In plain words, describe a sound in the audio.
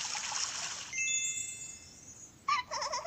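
A bright chime twinkles.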